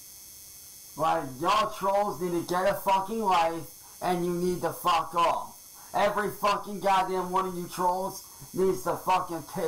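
A man speaks with animation, close through a microphone.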